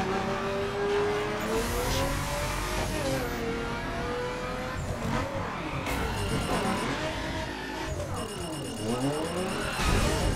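Tyres screech as a car skids through a turn.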